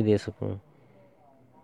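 A phone notification tone chimes briefly.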